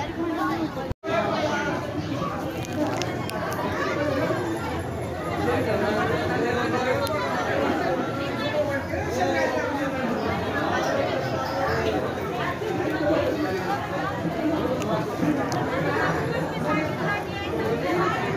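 A large crowd chatters and murmurs all around, outdoors.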